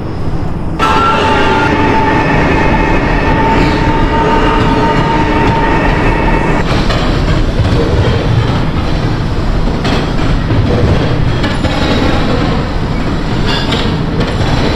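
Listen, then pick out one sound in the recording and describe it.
A subway train rumbles along the rails.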